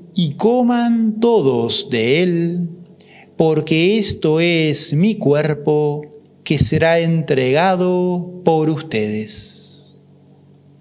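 A man speaks calmly through a clip-on microphone.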